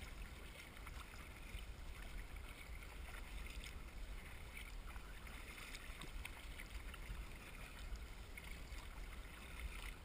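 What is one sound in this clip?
Wind buffets outdoors over open water.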